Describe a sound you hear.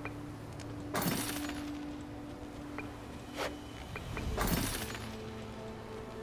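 A game reward sound rings out with a bright burst.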